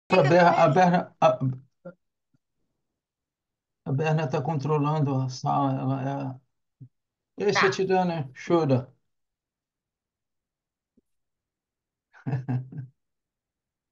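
A man and a woman speak calmly over an online call, with pauses between them.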